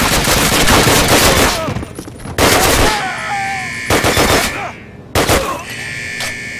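A rifle fires loud bursts in an echoing space.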